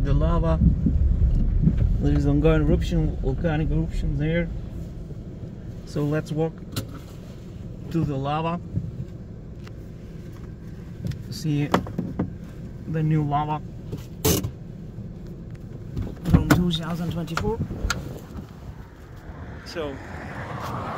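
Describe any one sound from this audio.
A car rumbles steadily along a road, heard from inside.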